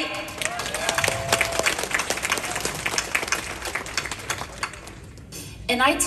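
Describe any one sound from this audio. A crowd applauds in an echoing hall.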